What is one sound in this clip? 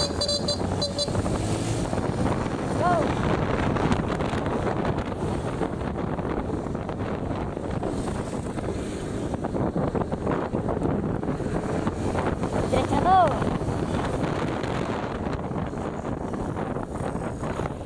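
Wind rushes past loudly.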